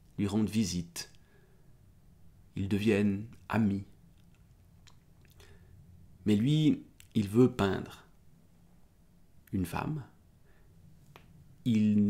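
A man speaks calmly and closely, in short bursts with pauses.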